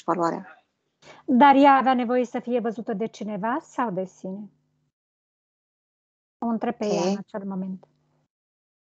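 A woman speaks calmly and softly through an online call.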